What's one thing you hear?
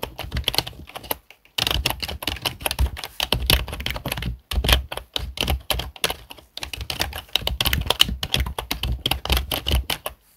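Fingers type quickly on a keyboard, with keys clicking rapidly.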